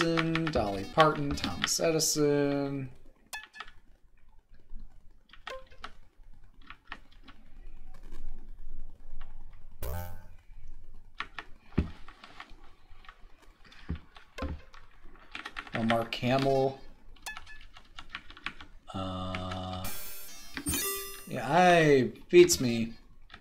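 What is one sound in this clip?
A computer game plays short electronic tunes and beeps.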